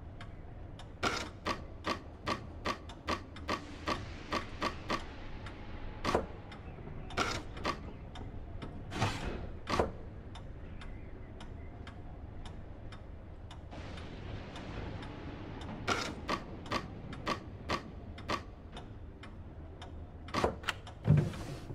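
Wooden blocks clack and slide as they are moved and turned in a puzzle box.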